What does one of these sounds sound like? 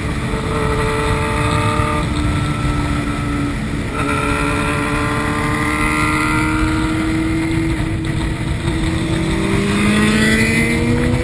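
A motorcycle engine roars close by, its pitch rising and falling as it shifts gears.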